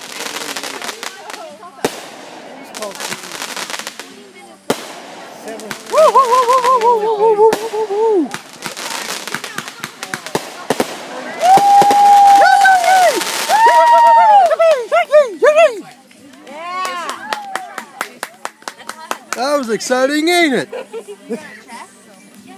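Fireworks bang and crackle in the open air.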